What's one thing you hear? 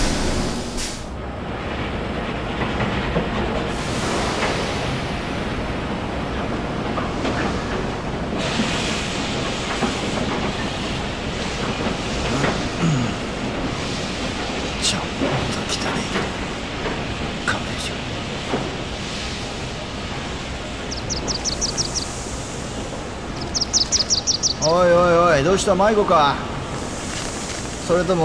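Steam hisses steadily from pipes.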